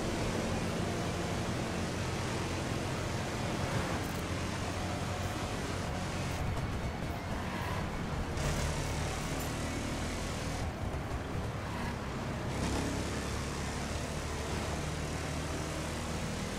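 A powerful car engine roars steadily at high speed.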